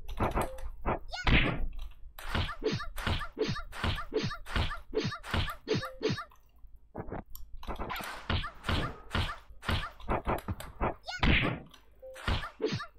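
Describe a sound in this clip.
Weapons whoosh and clash in a fast fight.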